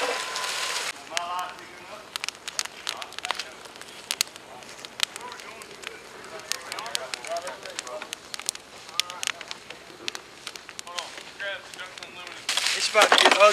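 A wood fire crackles and pops up close.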